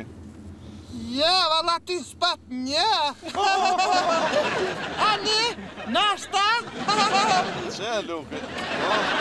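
Men laugh loudly close by.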